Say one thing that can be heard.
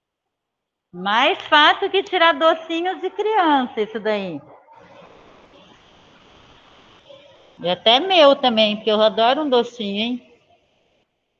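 A woman speaks through an online call.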